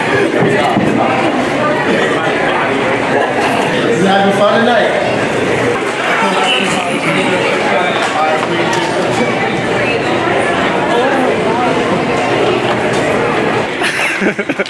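A crowd of young men and women chatter and laugh close by.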